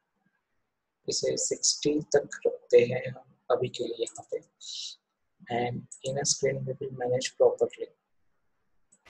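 A young man explains calmly, close to a microphone.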